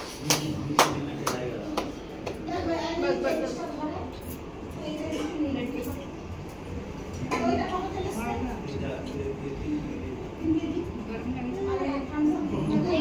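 Children and adults chatter and talk nearby.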